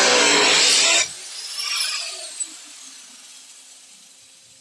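An angle grinder motor whines down and fades.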